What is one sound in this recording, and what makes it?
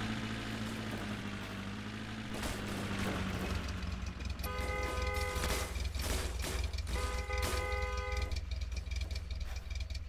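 A car door swings open and shut.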